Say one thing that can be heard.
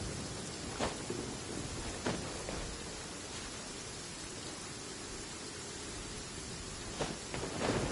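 Rain falls steadily and patters all around.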